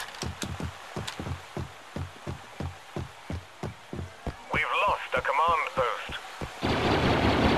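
Heavy footsteps thud quickly and steadily on hard ground.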